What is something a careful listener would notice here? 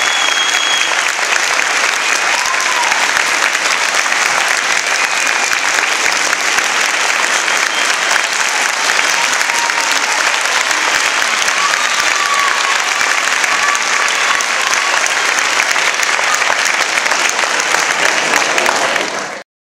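A large audience applauds loudly and steadily in a big hall.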